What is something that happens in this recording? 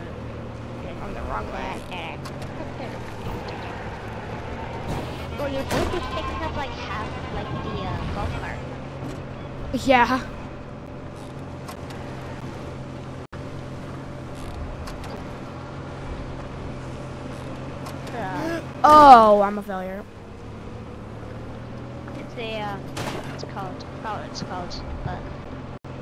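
A young boy talks excitedly into a close microphone, shouting now and then.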